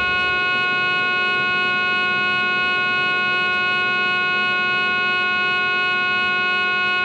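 An electric train's motors whine with a steady, high hum.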